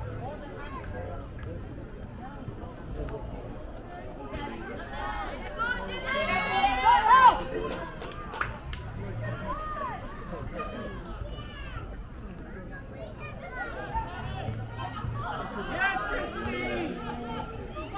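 Young players shout and call to each other across an open field, at a distance.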